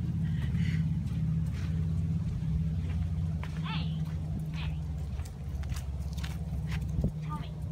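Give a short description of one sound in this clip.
A dog trots across gravel.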